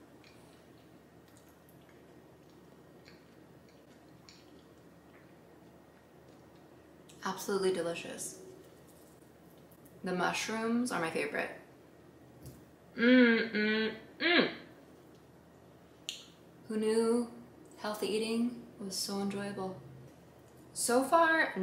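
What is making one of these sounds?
A fork scrapes and clinks on a plate.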